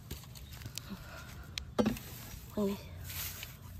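Dry leaves rustle softly as a hand brushes through them.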